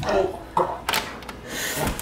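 A door handle clicks.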